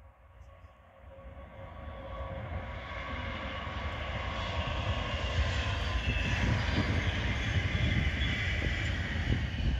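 A high-speed train rushes past on the tracks with a rising roar.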